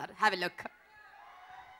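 A woman speaks brightly into a microphone over loudspeakers.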